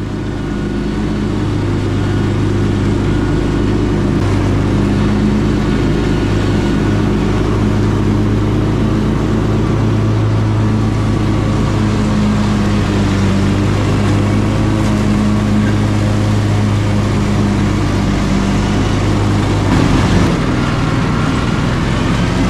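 Mower blades cut and whir through thick grass.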